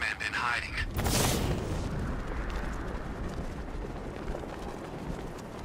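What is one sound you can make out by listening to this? Wind rushes loudly past while gliding through the air.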